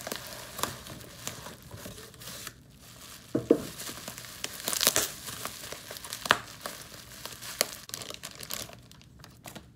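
Paper and plastic wrapping rustle and crinkle close by.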